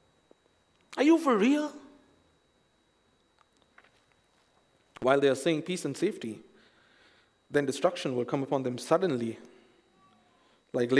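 A young man speaks calmly into a microphone, in short phrases with pauses.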